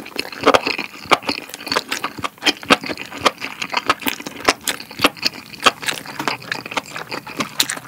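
A young man chews food wetly and noisily close to a microphone.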